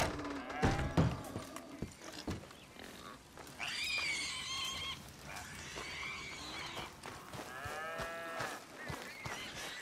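Footsteps crunch on dirt and grass.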